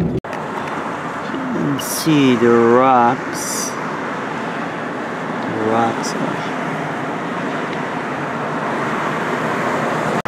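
A car drives past on a road nearby.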